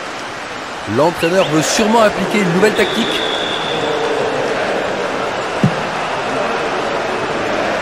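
A stadium crowd roars and murmurs steadily throughout.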